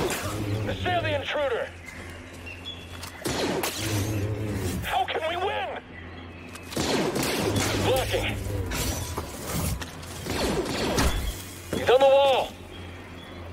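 A lightsaber swings with a buzzing whoosh.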